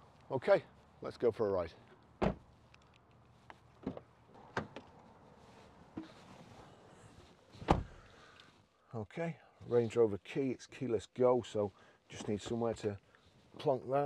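An older man talks calmly and close by.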